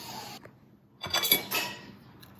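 A fork scrapes on a ceramic plate.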